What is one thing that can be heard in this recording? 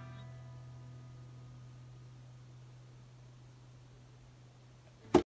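A violin plays a long, low note that slowly fades away.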